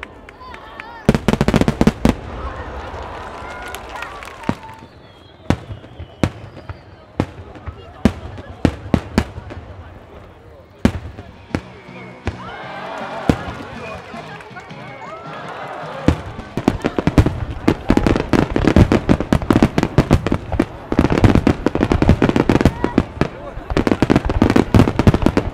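Fireworks crackle loudly.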